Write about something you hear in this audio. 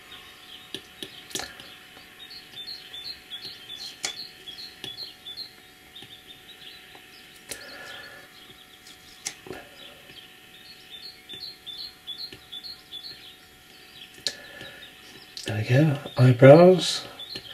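A stylus taps and scratches softly on a glass surface.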